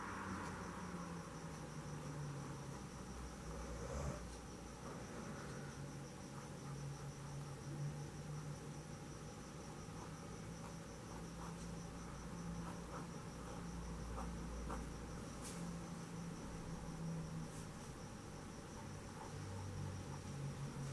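A paintbrush strokes softly across cloth.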